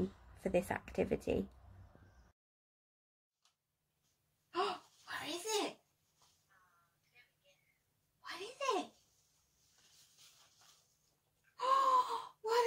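A young woman talks to a dog with animation, close by.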